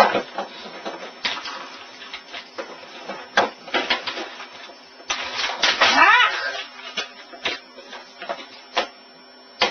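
Hands tap and rattle on a computer keyboard.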